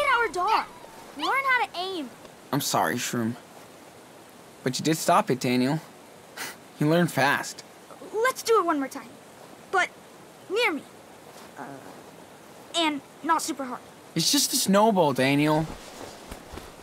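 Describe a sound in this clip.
A teenage boy speaks earnestly, close by.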